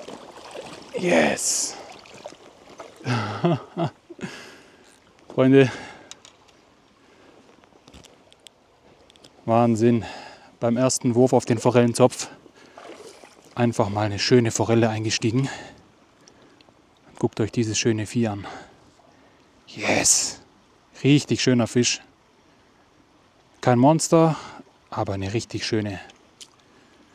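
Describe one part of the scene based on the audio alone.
A man talks calmly close up.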